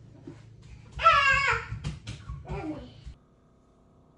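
A cat meows loudly nearby.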